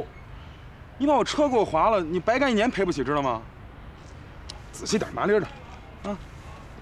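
A man answers in a worried voice.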